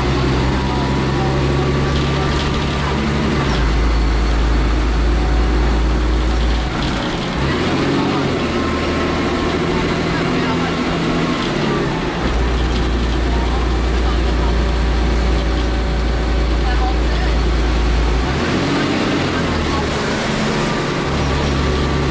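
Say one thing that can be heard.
A train hums and rumbles steadily along the rails.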